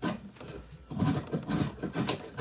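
A knife shaves wood with rough scraping strokes.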